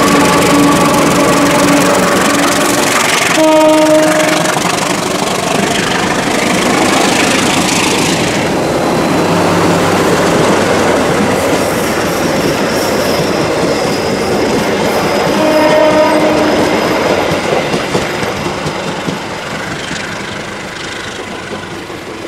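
A diesel locomotive engine roars loudly and slowly fades.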